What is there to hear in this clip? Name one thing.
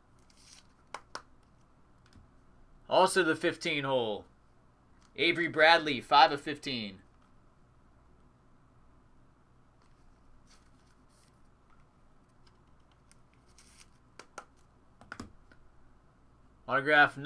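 A card is lifted from a plastic stand with a light tap.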